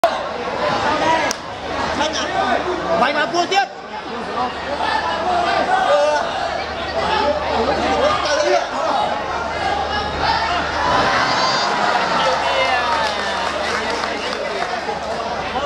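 A large crowd shouts and cheers throughout in a big echoing hall.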